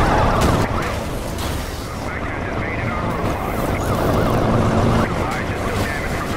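Cars crash and scrape against each other.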